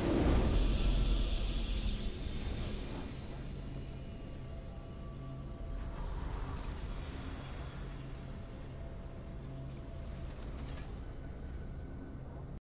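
Triumphant orchestral music plays.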